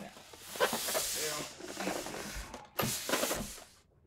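A cardboard box knocks onto a table.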